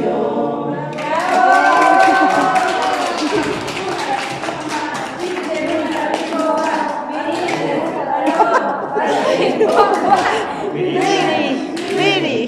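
People clap their hands in a steady rhythm.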